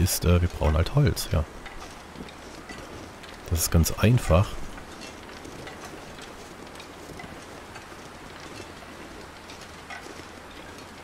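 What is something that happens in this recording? Wind blows steadily over snow outdoors.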